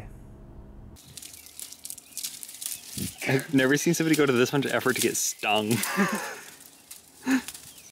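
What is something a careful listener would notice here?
Dry reeds rustle and crackle.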